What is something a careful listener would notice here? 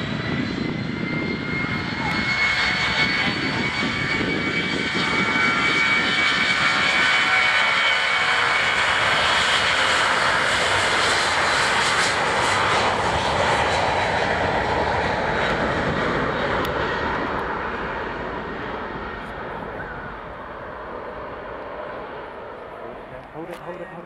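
A jet engine roars loudly with a high whine, then slowly fades.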